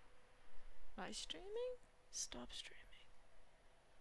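A young woman speaks briefly and animatedly, close to a microphone.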